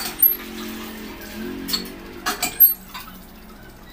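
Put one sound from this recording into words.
A hand pump's handle creaks and clanks as it is worked.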